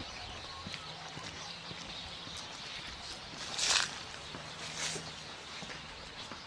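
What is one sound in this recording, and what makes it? Footsteps walk along a paved path outdoors.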